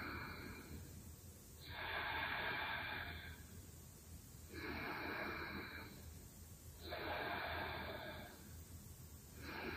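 A woman breathes slowly and deeply in and out.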